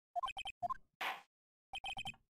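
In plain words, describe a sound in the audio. A gavel bangs once.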